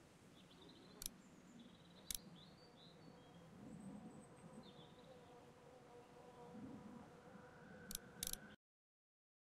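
A game menu gives short sharp clicks.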